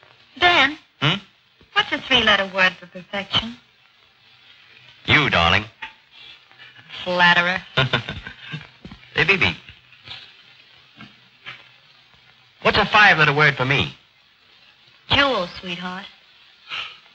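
A man speaks in a lively, friendly way, close by.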